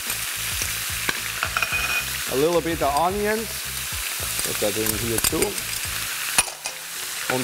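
Mussels sizzle and hiss in a hot pan.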